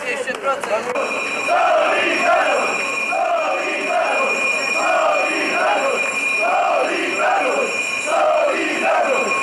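A crowd of men chants together in rhythm.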